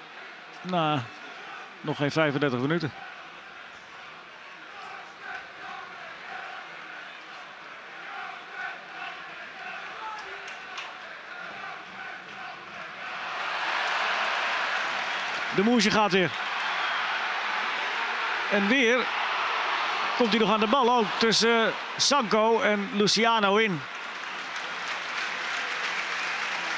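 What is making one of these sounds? A large stadium crowd murmurs and then roars louder as an attack builds.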